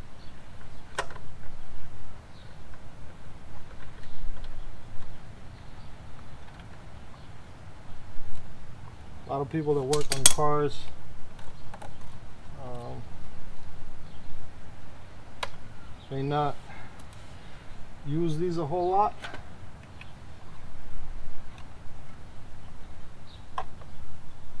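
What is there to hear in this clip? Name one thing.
A metal tool clicks against a motorcycle chain.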